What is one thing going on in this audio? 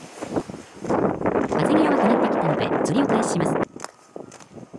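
Wind blows against a microphone outdoors.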